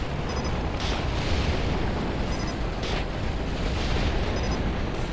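Energy weapons fire in short, hissing bursts.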